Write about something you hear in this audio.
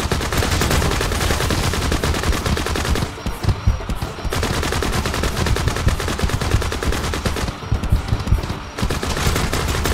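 Guns fire in rapid bursts with loud, quick shots.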